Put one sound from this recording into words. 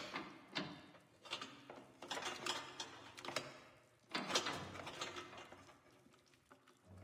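A hand rattles and knocks on a wooden door.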